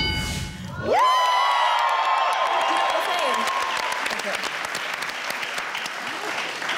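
A studio audience cheers and applauds.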